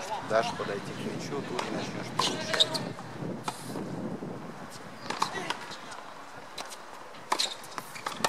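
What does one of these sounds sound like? Tennis balls pop off rackets outdoors.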